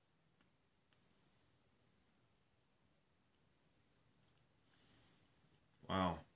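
A man exhales cigar smoke softly, close by.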